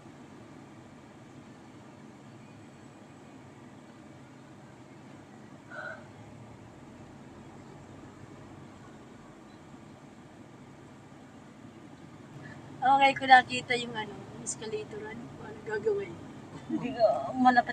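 A car engine hums steadily from inside the cabin.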